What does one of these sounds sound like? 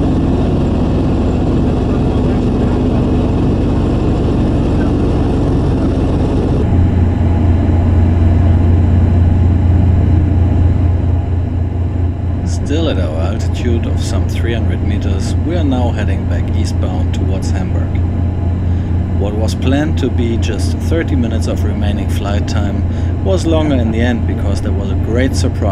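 Propeller engines drone loudly and steadily.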